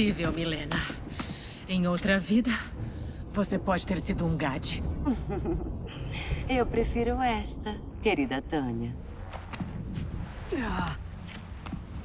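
A young woman speaks calmly and warmly.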